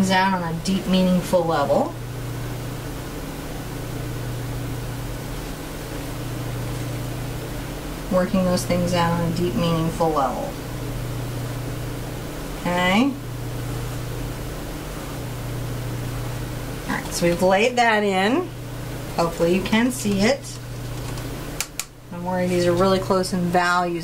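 A middle-aged woman talks calmly to a microphone, in bursts with pauses.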